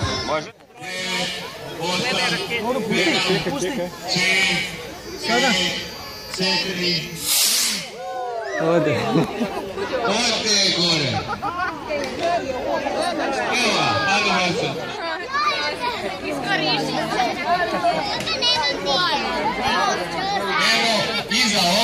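A crowd of adults and children chatters and calls out excitedly nearby, outdoors.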